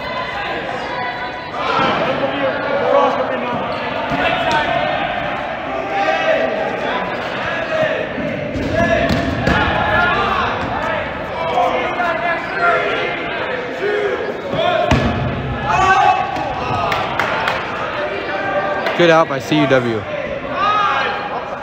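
Rubber balls smack and bounce on a hard floor in a large echoing hall.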